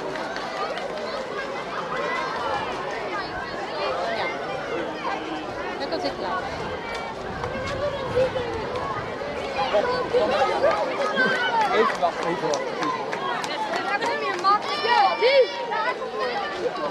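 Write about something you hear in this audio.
A crowd of people chatters outdoors on all sides.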